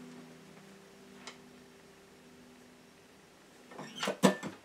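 A guitar chord rings softly and fades.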